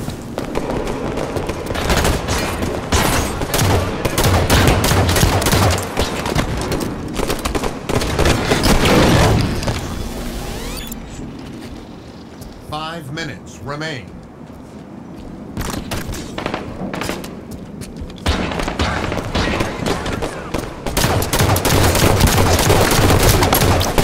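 Rapid gunfire crackles in a game.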